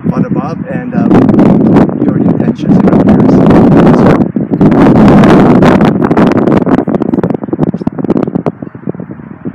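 Wind gusts loudly across the microphone outdoors.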